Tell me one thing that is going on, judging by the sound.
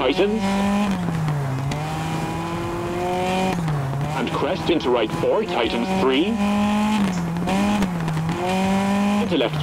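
A rally car engine roars, revving up and dropping as it shifts gears.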